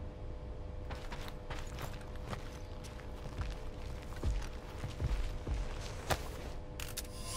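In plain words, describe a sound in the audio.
Footsteps thud on a metal floor.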